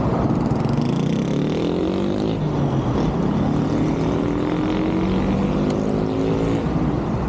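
A bus engine drones and rises in pitch as it pulls away.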